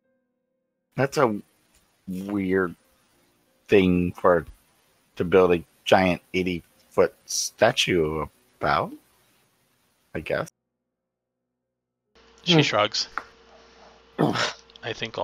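A man talks animatedly over an online call, heard through a headset microphone.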